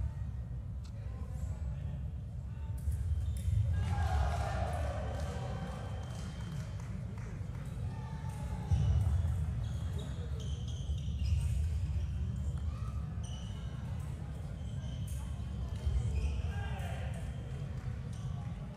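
Fencers' shoes thump and squeak on a metal strip as they step back and forth.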